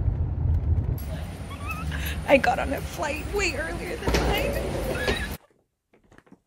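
A young woman speaks excitedly and close up.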